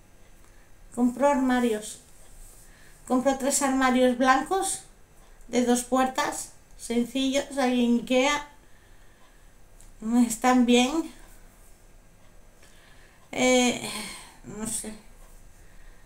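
A young woman speaks calmly and close to a microphone, in short phrases with pauses.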